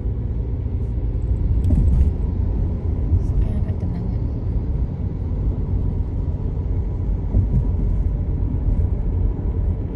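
Wind rumbles steadily against a moving vehicle outdoors.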